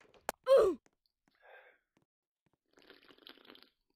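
A game character breaks apart with a crunching thud.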